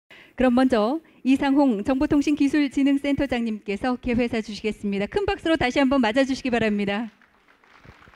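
A woman speaks with animation through a microphone over loudspeakers.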